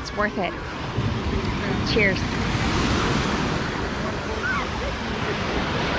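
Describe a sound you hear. Waves wash onto the shore.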